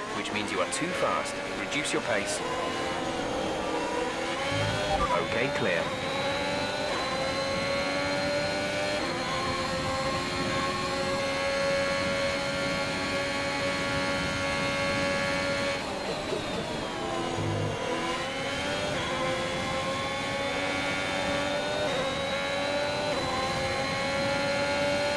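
A racing car engine whines loudly, rising in pitch as it speeds up through the gears.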